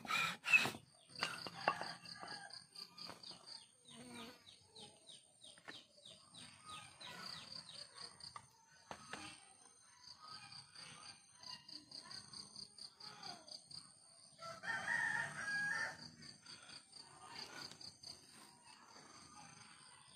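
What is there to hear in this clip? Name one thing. A blade scrapes and shaves wood.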